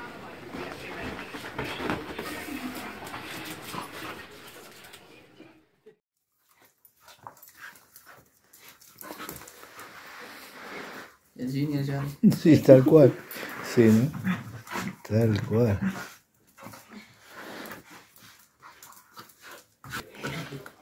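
Dog paws scrabble on a hard floor.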